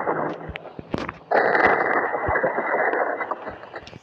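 A wooden chair cracks and breaks apart.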